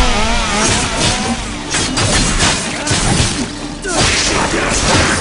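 A sword slashes and clangs in rapid strikes.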